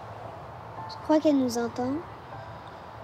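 A young girl asks a question softly, close by.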